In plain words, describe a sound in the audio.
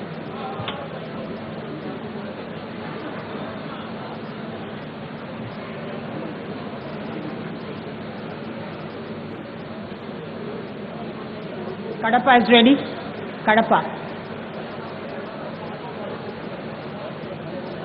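A crowd murmurs steadily in a large hall.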